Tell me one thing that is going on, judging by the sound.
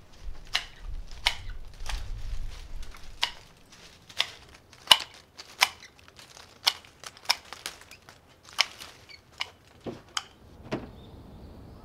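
Pruning shears snip sharply at branches, again and again.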